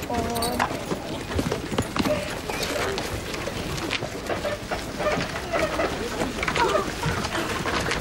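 Horses' hooves clop on snowy ground.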